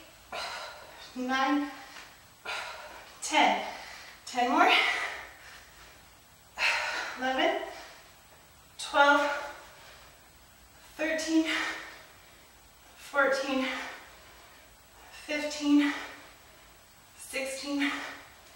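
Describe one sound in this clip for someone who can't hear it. A young woman grunts and exhales sharply with effort, nearby, in regular bursts about every two seconds.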